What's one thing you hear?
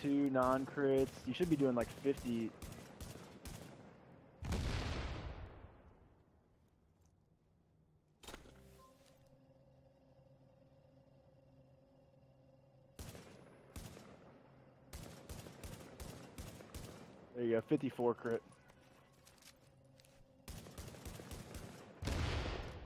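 Rapid gunshots fire in short bursts.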